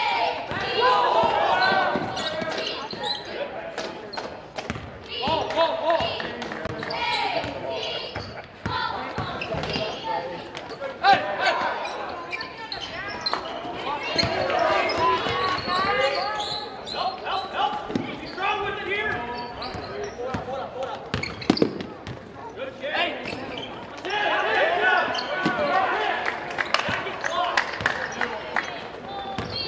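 A crowd of spectators cheers and murmurs in a large echoing gym.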